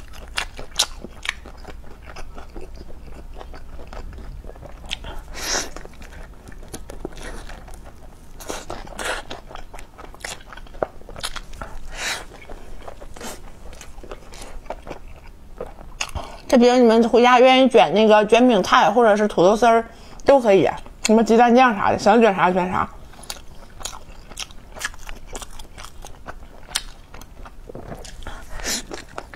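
A young woman chews and crunches food close to a microphone.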